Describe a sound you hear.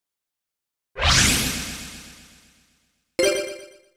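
A loud game whoosh swells and fades as a duel begins.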